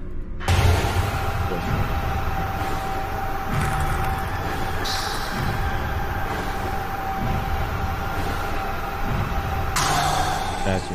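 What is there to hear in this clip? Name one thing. A flamethrower roars steadily.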